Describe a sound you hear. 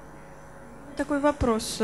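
A young woman speaks into a handheld microphone.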